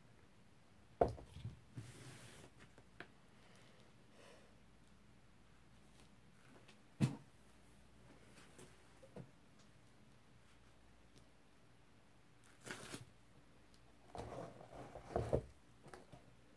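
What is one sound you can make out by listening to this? A paint-covered vinyl record is lifted and knocks against a table.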